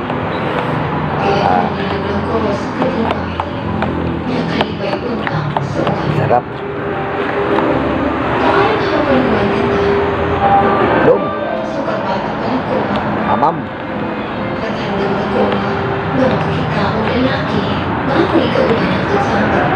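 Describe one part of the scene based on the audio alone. A spoon scrapes and clinks in a cup.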